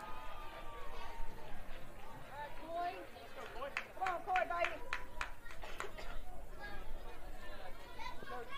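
Adults and children shout and cheer loudly outdoors.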